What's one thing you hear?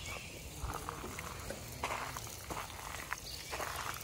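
Water splashes from a spout into a basin.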